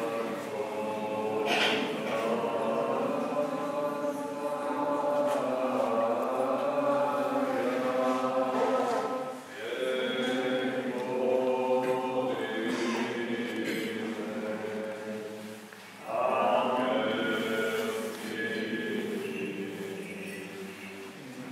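Men chant together in a slow, steady liturgical chant that echoes through a large resonant hall.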